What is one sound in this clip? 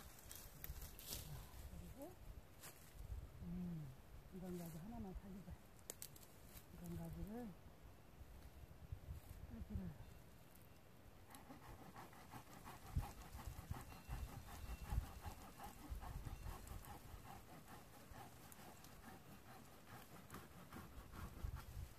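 Pruning shears snip through plum tree branches.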